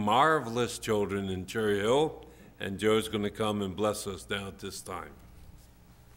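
An elderly man speaks over a microphone with emphasis.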